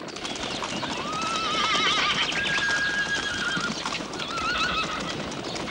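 Horses whinny and neigh.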